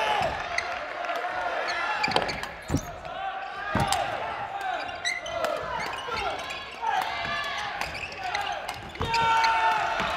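Rackets smack a shuttlecock back and forth.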